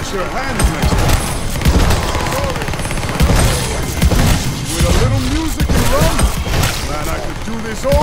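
Zombies groan and snarl.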